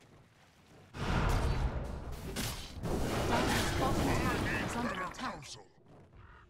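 Magical spell effects whoosh and crackle during a fight.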